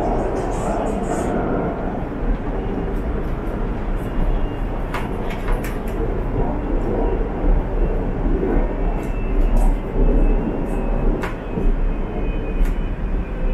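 A train car rattles and clicks as it rolls.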